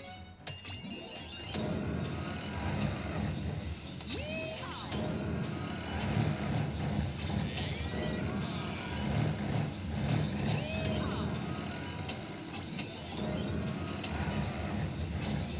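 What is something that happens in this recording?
Pinball chimes and whooshing effects ring out repeatedly.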